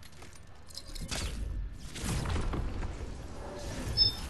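A loud rushing whoosh bursts out and fades away.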